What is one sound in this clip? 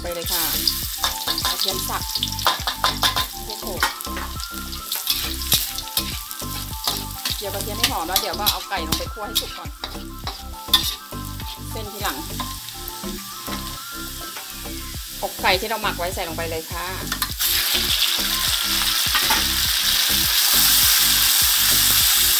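Oil sizzles in a hot pan.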